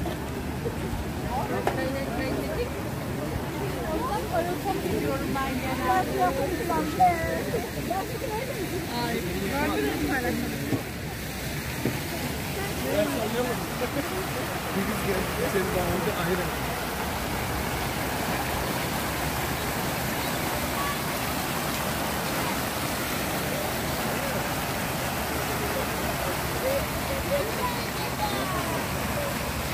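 Fountain jets splash into a pool.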